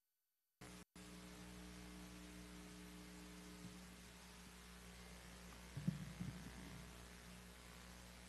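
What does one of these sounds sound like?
A piano plays softly in a large hall.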